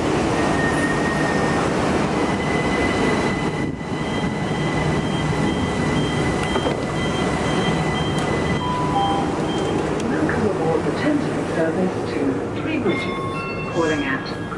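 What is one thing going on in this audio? A train hums and rumbles steadily at a platform.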